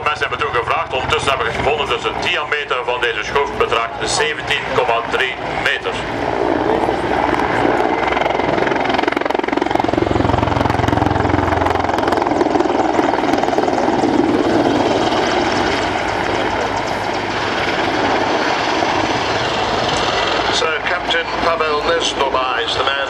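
A helicopter's rotor thuds and its engine roars overhead, growing louder as it passes close.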